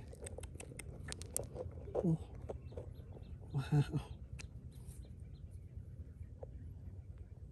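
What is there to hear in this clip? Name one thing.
Fingers scrape and crumble dry soil close by.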